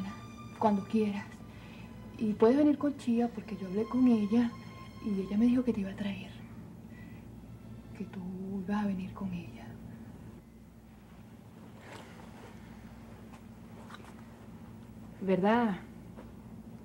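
A young woman speaks urgently and with animation, close by.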